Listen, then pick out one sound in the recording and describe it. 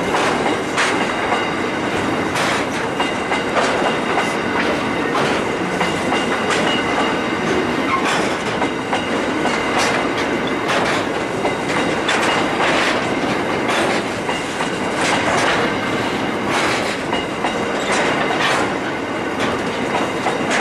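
Coal wagon wheels clatter over rail joints.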